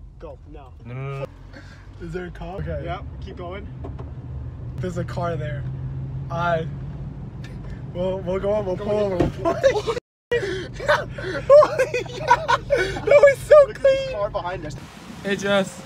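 Young men talk and laugh loudly close by.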